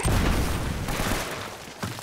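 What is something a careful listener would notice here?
Bullets smack into stone and kick up debris.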